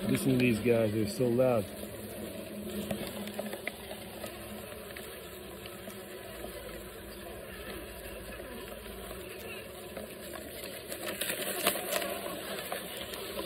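Bees buzz inside a plastic bottle.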